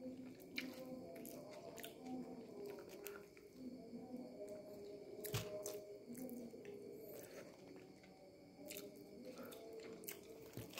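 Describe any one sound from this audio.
A young man chews and bites into a kebab wrap close up.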